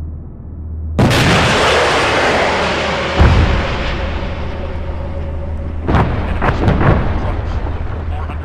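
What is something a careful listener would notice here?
A tank engine rumbles steadily nearby.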